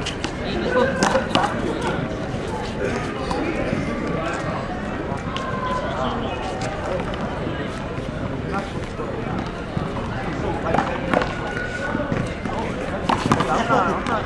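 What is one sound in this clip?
A small ball smacks sharply against hands and a wall.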